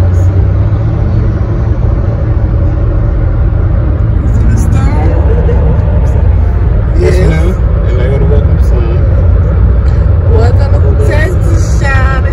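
A car's engine and tyres rumble steadily on a highway.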